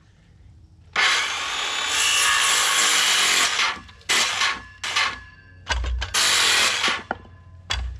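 A circular saw whines loudly as it cuts through wood.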